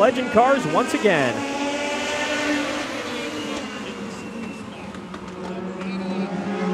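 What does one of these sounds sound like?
Several racing car engines roar and whine loudly as the cars race past.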